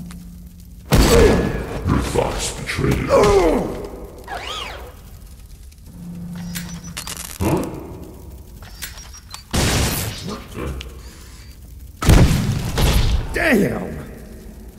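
Heavy gunfire blasts in loud bursts that echo in a large hall.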